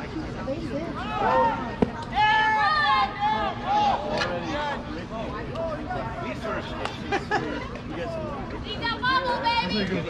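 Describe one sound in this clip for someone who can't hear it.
Young voices shout and cheer outdoors.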